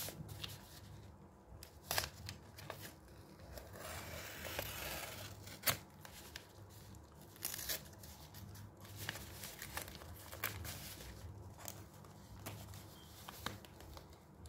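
A utility knife slices through a padded paper mailer.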